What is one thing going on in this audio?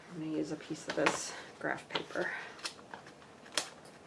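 Pages of a paper pad flip and rustle.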